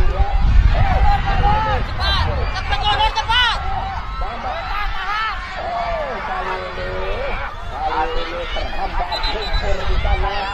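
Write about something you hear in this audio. A crowd of spectators shouts and cheers excitedly outdoors.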